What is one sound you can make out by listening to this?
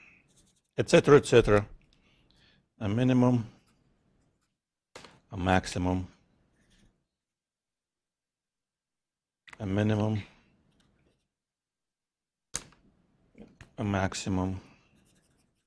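A man speaks calmly in short phrases with long pauses.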